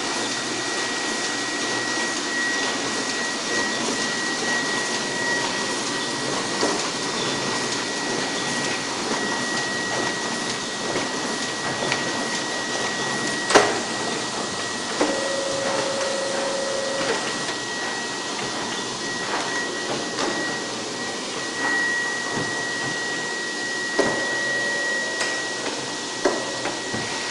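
A printing press runs with a steady mechanical clatter and whir.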